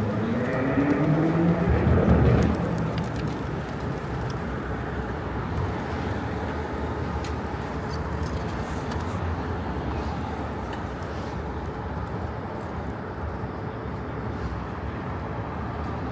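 Traffic rumbles steadily along a busy city street outdoors.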